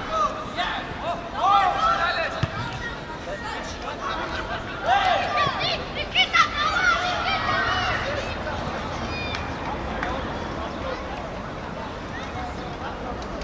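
A crowd of spectators murmurs in the distance.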